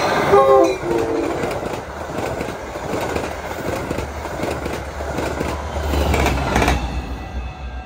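A train rumbles and rattles past up close.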